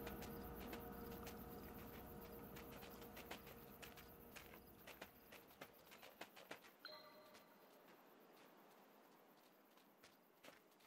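Paws crunch softly on snow in quick, light steps.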